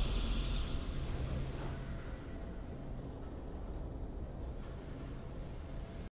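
A triumphant game victory fanfare plays and fades.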